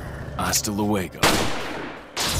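A pistol fires a loud shot.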